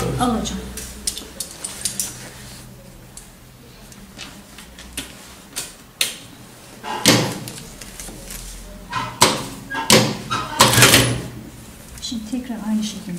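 Fabric rustles and crinkles as hands handle it.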